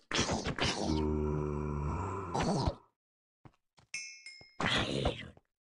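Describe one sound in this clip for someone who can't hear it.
Blows strike a zombie with dull thuds.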